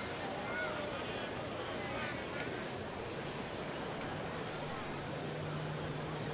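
A crowd murmurs in a ballpark stadium.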